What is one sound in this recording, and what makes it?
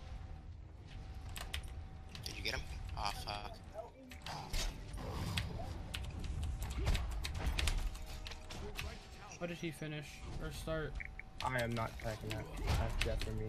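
Game combat sounds clash and whoosh.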